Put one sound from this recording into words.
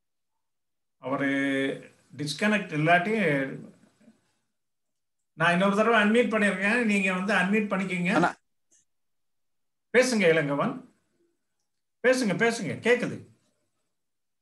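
A man speaks calmly through an online call, with pauses.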